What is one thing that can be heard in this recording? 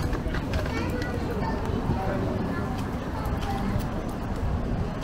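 People chatter in the distance.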